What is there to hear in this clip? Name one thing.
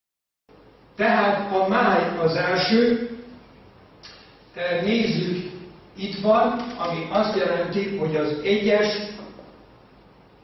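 An elderly man speaks calmly, lecturing.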